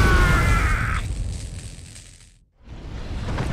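A rushing blast of energy roars loudly and fades away.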